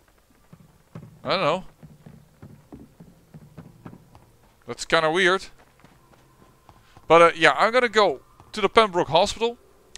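Footsteps thud on wooden stairs and stone paving.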